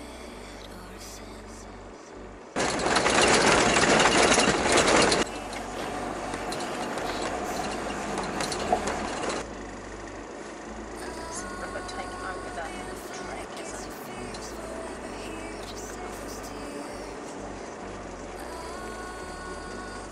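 A vehicle engine rumbles steadily as it drives over a rough track.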